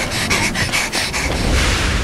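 A young woman calls out weakly.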